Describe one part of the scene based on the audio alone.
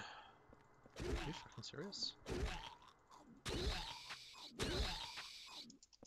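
Heavy blows thud against a body, one after another.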